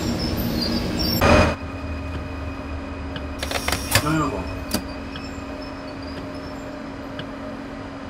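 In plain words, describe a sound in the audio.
A train rumbles low and fades as it slows to a stop.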